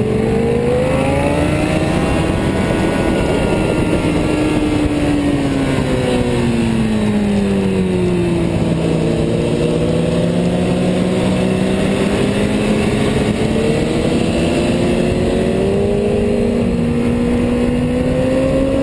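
Another motorcycle engine whines nearby.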